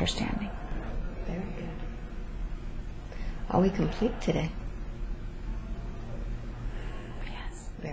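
A young woman breathes slowly and softly in her sleep close by.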